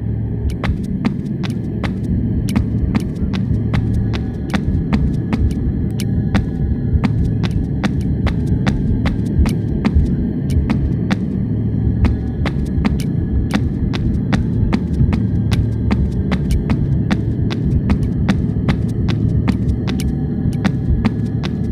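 Footsteps run quickly and steadily across a hard floor.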